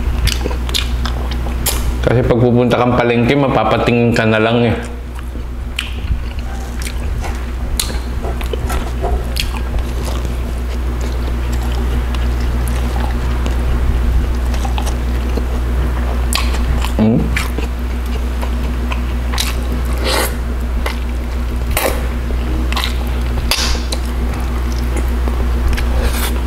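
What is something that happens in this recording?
A man chews and smacks his lips loudly close to a microphone.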